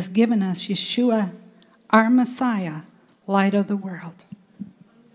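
A woman sings loudly into a microphone.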